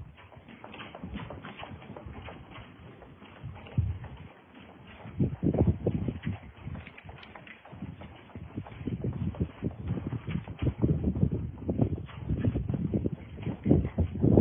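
A man runs with quick footsteps on dirt.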